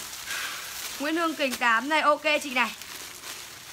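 A young woman speaks animatedly into a nearby microphone.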